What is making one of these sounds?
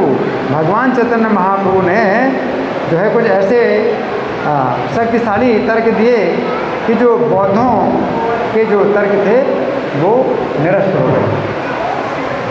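An elderly man speaks with animation into a microphone, heard through a loudspeaker in a hall.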